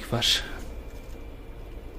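A metal ornament clinks softly as a hand handles it.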